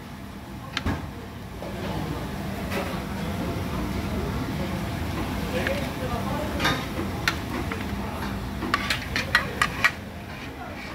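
Metal tongs click and scrape against a metal tray.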